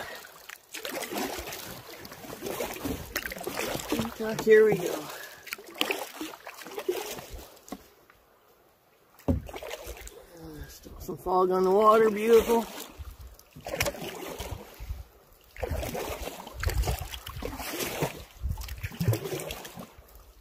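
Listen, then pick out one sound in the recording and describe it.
Water laps gently against the side of a canoe.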